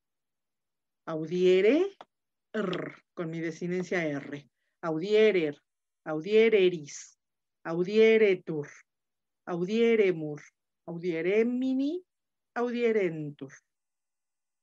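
A man speaks calmly through an online call in short, measured phrases.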